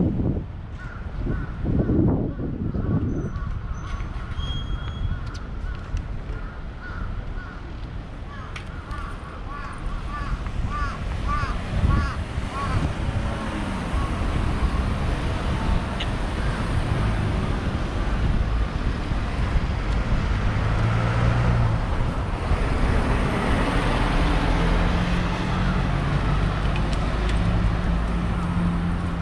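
Traffic hums steadily along a city street outdoors.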